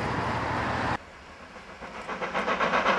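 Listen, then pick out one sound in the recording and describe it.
A distant steam locomotive puffs rhythmically as it approaches.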